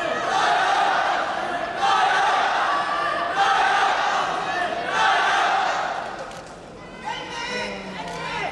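A large crowd cheers and shouts in an echoing hall.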